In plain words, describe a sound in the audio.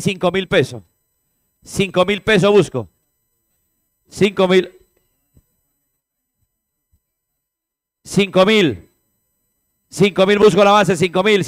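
A man speaks loudly and rapidly through a microphone in short bursts.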